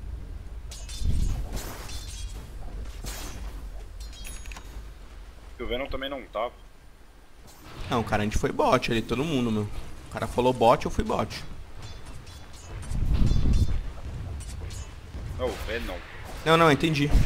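Swords clash and magic spells crackle in a busy battle.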